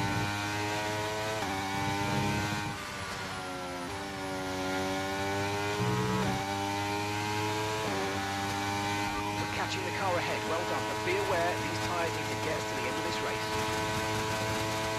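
A racing car engine whines loudly, dropping in pitch at each gear change and then climbing again.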